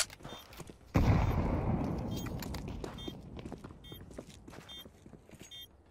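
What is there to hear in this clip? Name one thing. A grenade explodes with a loud boom that slowly fades.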